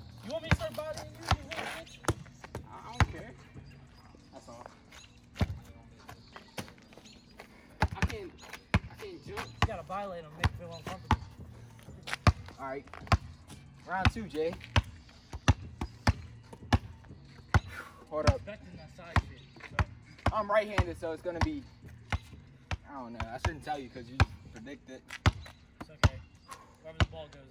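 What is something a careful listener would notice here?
A basketball bounces repeatedly on asphalt outdoors.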